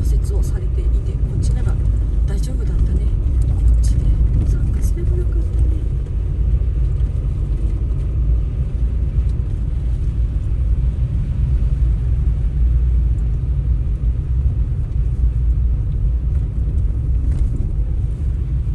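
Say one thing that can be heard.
Tyres crunch and hiss over packed snow.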